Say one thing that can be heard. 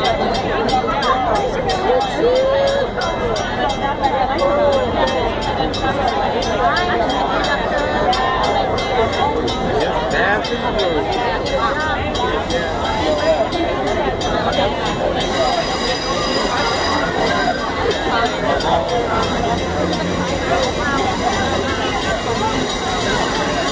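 Passenger rail cars roll slowly past.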